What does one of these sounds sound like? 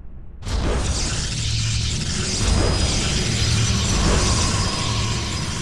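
Units warp in with a bright, humming whoosh.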